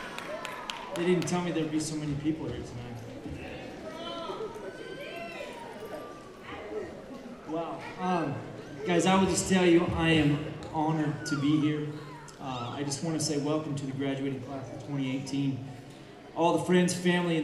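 A man speaks through a microphone with animation in a large echoing hall.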